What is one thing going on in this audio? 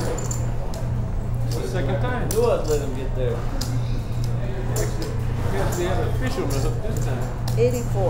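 Poker chips click and clatter.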